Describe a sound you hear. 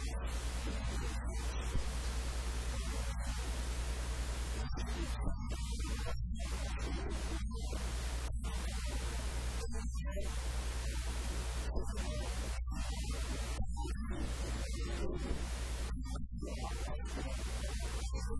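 A middle-aged man speaks with animation through a microphone in an echoing room.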